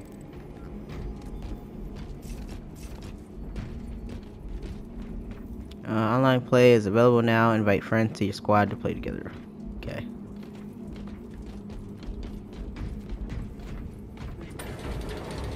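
Heavy armoured footsteps clank on a hard floor.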